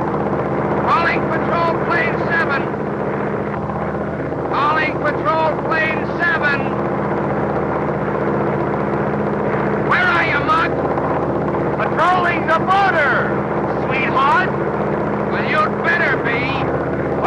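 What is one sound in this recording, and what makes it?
A man speaks into a microphone over the engine noise.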